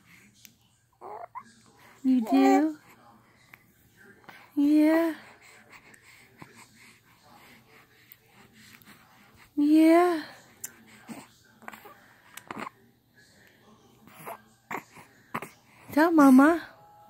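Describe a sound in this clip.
A baby coos and babbles softly up close.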